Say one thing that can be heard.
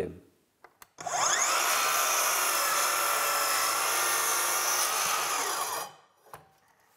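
A miter saw motor whirs loudly and cuts through wood.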